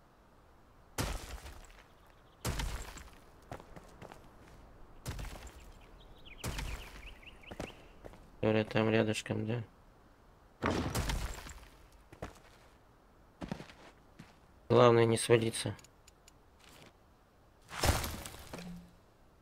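Heavy stone blocks thud into place.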